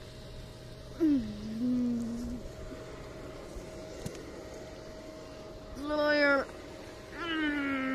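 A young boy hums and giggles close by.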